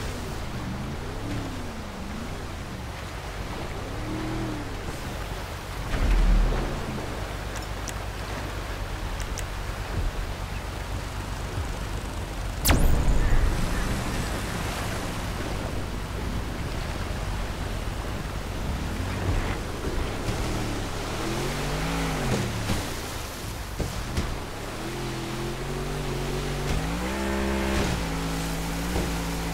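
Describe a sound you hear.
Water splashes and sprays around a speeding boat.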